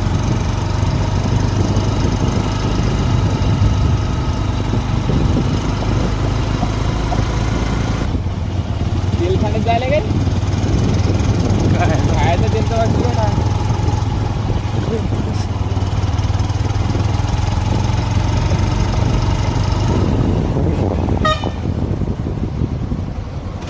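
A motorcycle engine hums while riding along a road.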